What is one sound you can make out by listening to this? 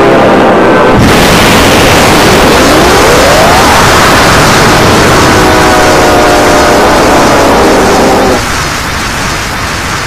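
A loud rushing roar of energy beams surges up and holds steady.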